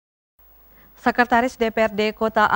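A young woman speaks clearly and evenly into a microphone, reading out.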